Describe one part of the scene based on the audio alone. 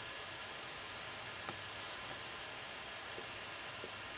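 A paintbrush brushes softly against a painted surface.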